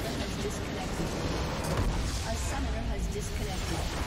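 A large crystal bursts with a deep, rumbling explosion.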